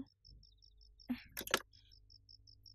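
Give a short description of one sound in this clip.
A phone handset clatters down onto its cradle.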